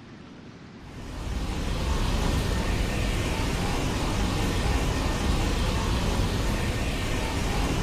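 Electricity crackles and roars loudly.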